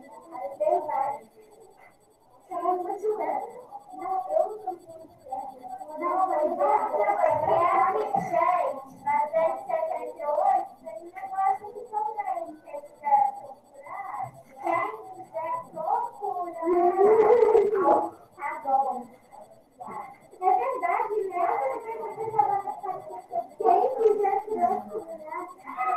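A woman speaks calmly through a computer microphone on an online call.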